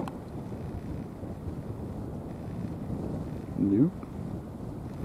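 Water ripples and laps steadily.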